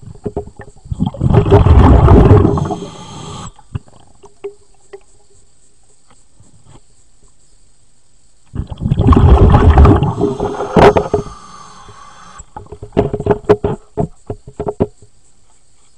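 Water churns and bubbles underwater close by.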